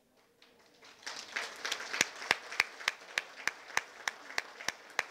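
A crowd claps hands in rhythm.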